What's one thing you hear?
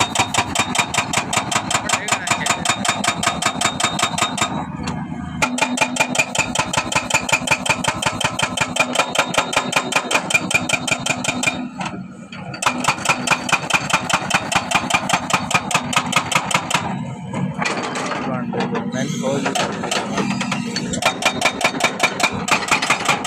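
An excavator engine rumbles.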